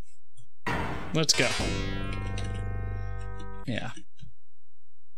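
A short electronic game tune plays.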